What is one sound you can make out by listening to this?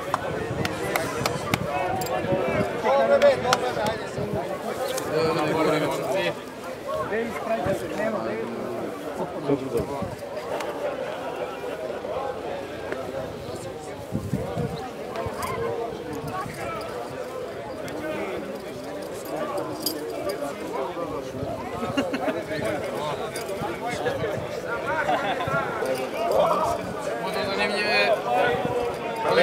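Several men talk and chatter outdoors at close range.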